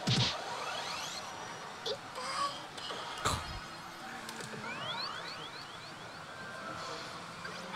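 A slot machine plays electronic music and sound effects.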